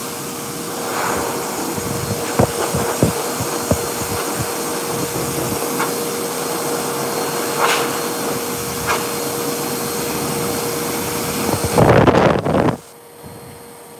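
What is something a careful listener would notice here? A grooming dryer blows with a steady whirring hum, then stops.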